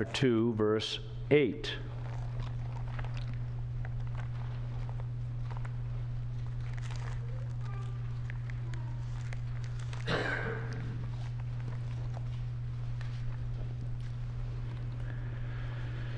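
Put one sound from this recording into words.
Paper pages rustle and turn close to a microphone.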